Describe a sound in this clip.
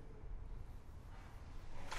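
A cello plays softly.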